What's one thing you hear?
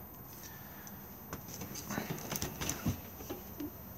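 A refrigerator door is pulled open with light rattling.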